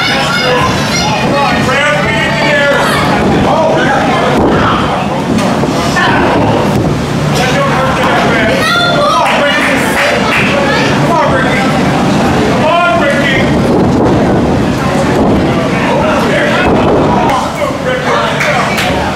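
A small crowd of spectators shouts and cheers in an echoing hall.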